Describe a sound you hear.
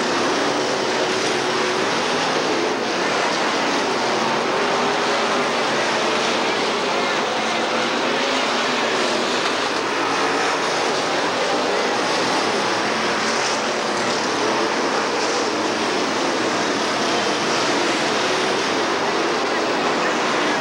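Race car engines roar loudly.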